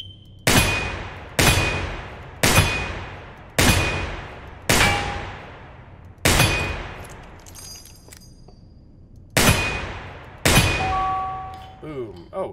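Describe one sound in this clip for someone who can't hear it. A revolver fires loud shots that echo through a large hall.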